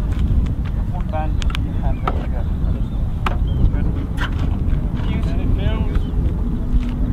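Men talk briefly nearby in calm voices.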